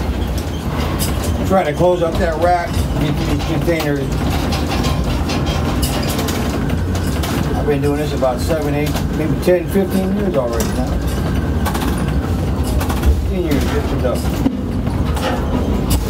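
A crane's machinery hums and rumbles steadily as it lowers its load.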